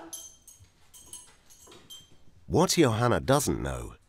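A door opens and closes.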